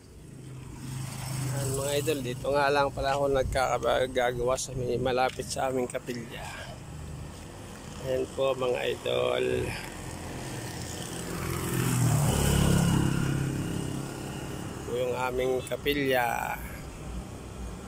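A middle-aged man talks calmly, close by.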